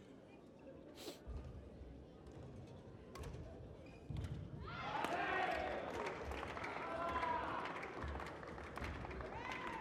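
A shuttlecock is struck sharply back and forth by rackets.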